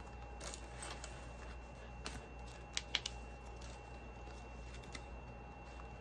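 Paper bills rustle as they are counted.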